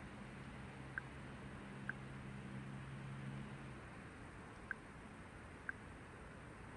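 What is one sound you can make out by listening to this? A soft menu click sounds as an option is picked.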